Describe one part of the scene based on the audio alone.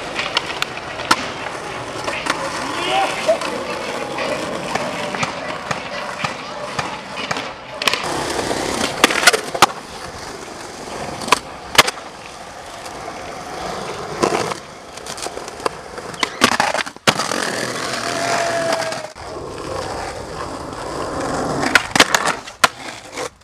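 A skateboard clacks and snaps against the ground.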